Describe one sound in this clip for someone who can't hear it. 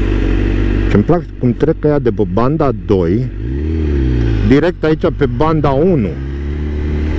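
A motorcycle engine revs up and down sharply through quick gear changes.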